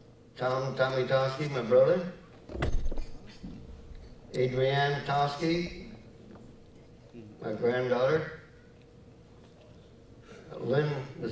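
An elderly man reads aloud calmly, close by, in short phrases.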